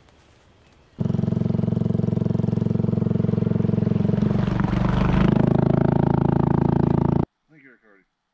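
A motorcycle engine roars as the bike rides through water.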